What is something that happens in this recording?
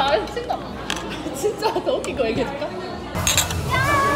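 Young women chat and laugh close by.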